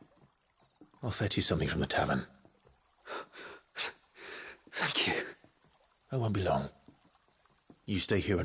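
A man answers in a deep, calm voice, close by.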